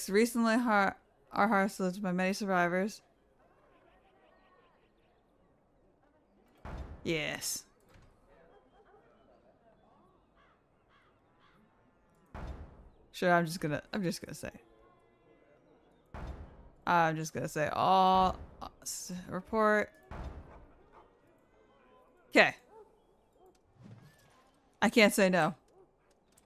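A young woman talks with animation into a close microphone, in bursts with pauses.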